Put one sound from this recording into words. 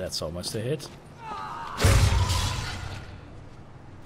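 A giant spider screeches and hisses.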